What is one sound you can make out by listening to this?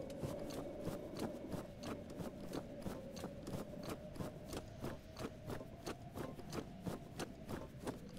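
Footsteps crunch quickly and steadily through snow.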